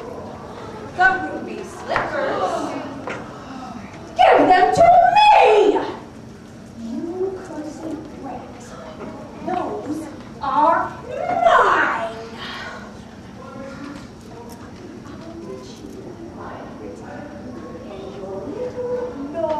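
A woman speaks theatrically.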